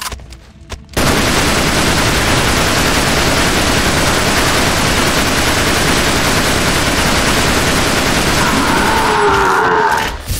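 A machine gun fires in rapid, unbroken bursts.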